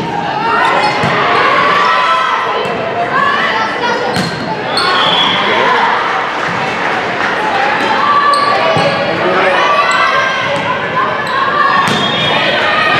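Hands hit a volleyball with sharp slaps.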